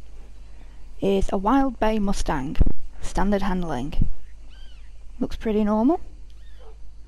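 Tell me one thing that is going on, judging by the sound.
A horse whinnies nearby.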